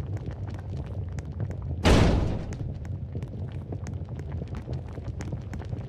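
Quick footsteps patter on a hard floor.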